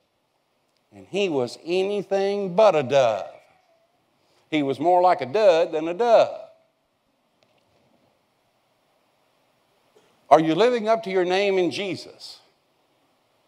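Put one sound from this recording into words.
An elderly man speaks with animation over a microphone, pausing between phrases.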